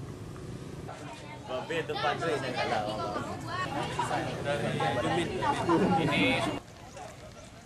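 Adult men talk with each other nearby.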